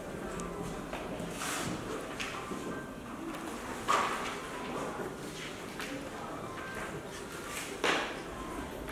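Paper pages rustle as sheet music is turned.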